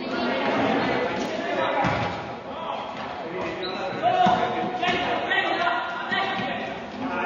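A futsal ball thuds as players kick it in an echoing hall.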